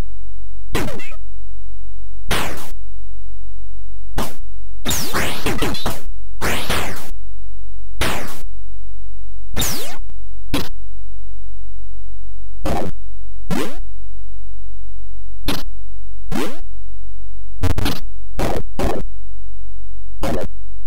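Short electronic game sound effects burst out in quick noisy zaps.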